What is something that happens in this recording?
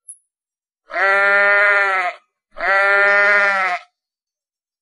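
A sheep bleats twice.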